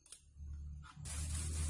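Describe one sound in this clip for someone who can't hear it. A spray bottle hisses in short bursts close by.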